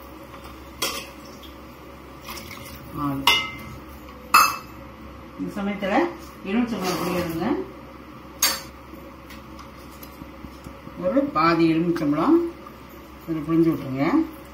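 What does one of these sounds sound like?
A pot of soup simmers softly.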